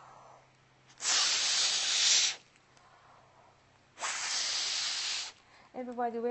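A woman blows hard through a paper toy in long rushing breaths.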